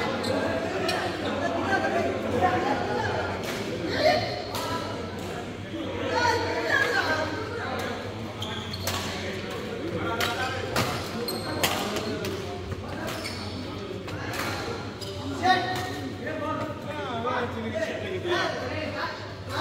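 Voices of several men talk and call out, echoing in a large hall.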